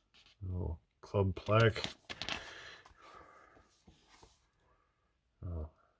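Paper magazine pages rustle as they are turned by hand.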